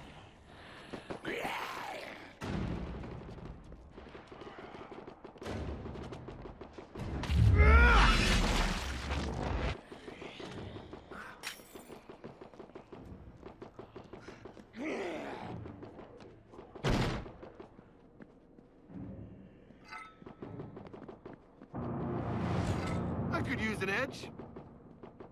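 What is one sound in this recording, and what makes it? Zombies groan and moan loudly.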